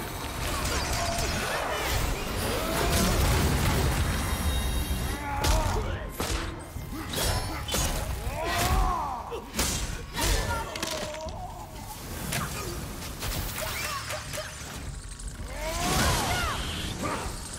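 Heavy blows strike and clang repeatedly.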